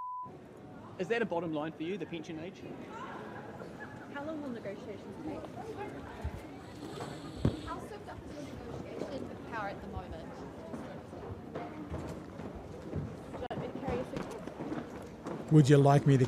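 Several reporters call out questions.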